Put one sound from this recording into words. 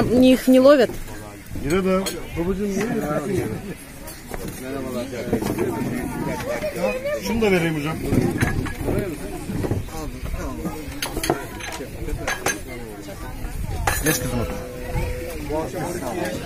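Several men talk over one another nearby.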